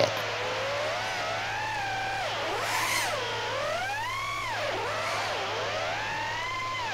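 A drone's motors whine loudly, rising and falling in pitch as it swoops and turns.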